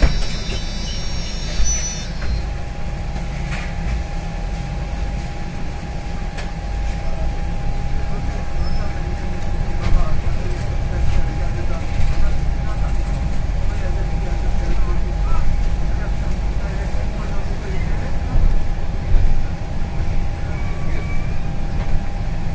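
A steady electric whine hums inside the bus.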